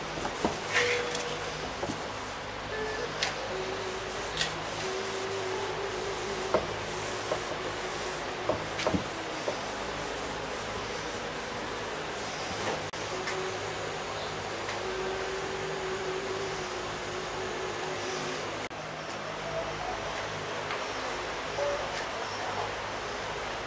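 A plastic car bumper knocks and thumps as it is handled.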